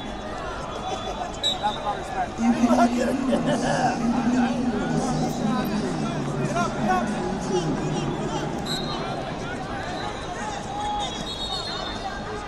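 Shoes squeak on a wrestling mat.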